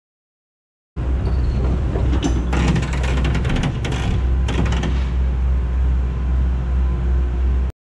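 A bus body creaks and scrapes as an excavator drags it across the ground.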